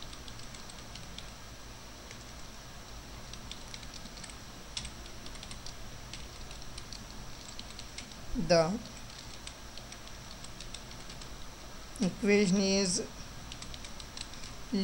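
A computer keyboard clicks softly with intermittent typing.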